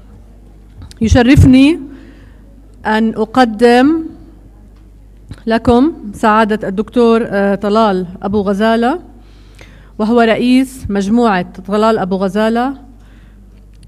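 A woman speaks calmly into a microphone, heard through a loudspeaker in a large hall.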